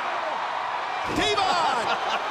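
A body slams hard onto a wrestling mat with a thud.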